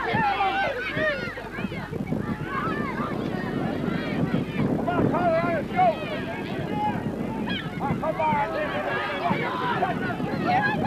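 A crowd of men and women shouts and cheers excitedly outdoors.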